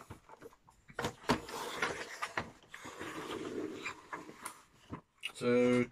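Cardboard rustles as a man handles a box.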